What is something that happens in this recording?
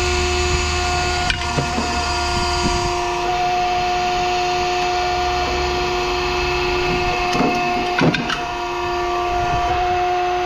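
Metal parts clank and rattle as a hand sorts through a pile of scrap.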